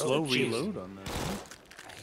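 A gun fires a burst of shots.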